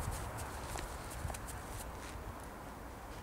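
A large dog's paws crunch on snow.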